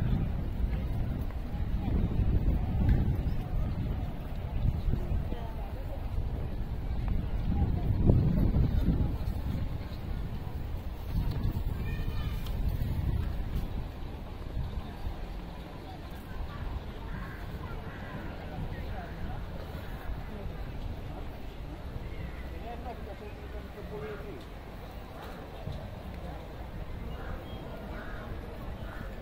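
Wind blusters loudly outdoors.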